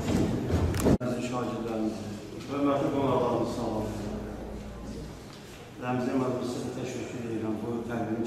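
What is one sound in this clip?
A middle-aged man speaks calmly from a podium into a microphone.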